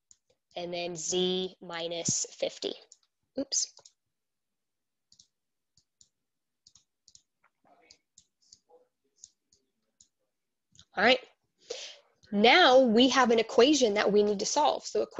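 A young woman speaks with animation close to a headset microphone, pausing now and then.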